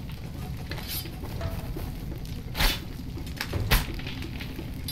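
A machete swishes through the air.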